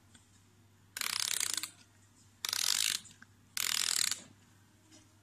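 A music box's key is wound with a ratcheting sound.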